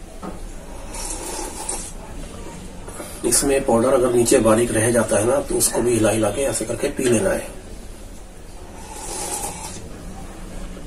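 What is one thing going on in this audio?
A man sips and gulps a drink.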